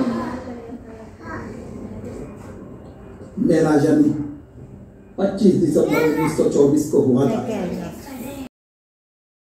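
A man speaks through a loudspeaker in a room, echoing slightly.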